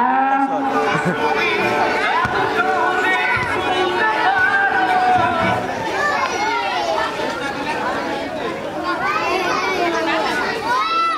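Children shriek and call out in high voices.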